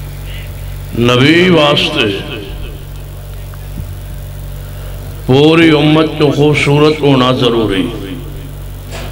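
A middle-aged man chants melodiously into a microphone, amplified through loudspeakers.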